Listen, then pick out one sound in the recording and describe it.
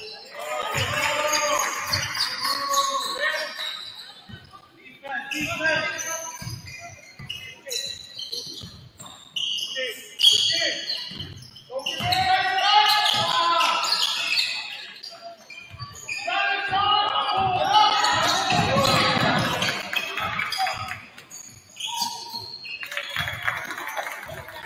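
A crowd of spectators cheers and shouts in an echoing gym.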